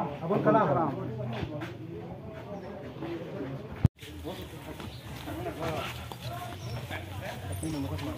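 A crowd murmurs outdoors as people walk.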